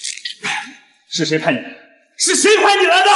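A young man asks sharply.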